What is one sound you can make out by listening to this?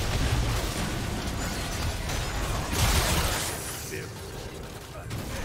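Magic spells burst and crackle in rapid succession.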